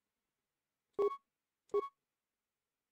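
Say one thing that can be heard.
A bright two-note menu chime sounds twice.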